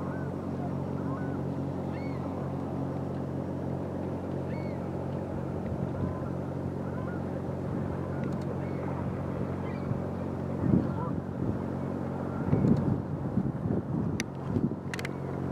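A Great Lakes freighter's diesel engine drones across the water.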